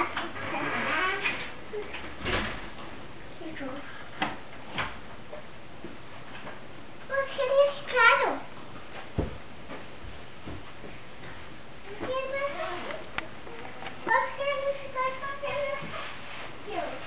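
A toddler babbles and chatters nearby.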